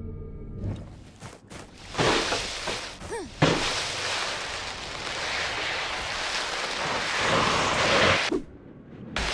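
A loud rushing whoosh sweeps past.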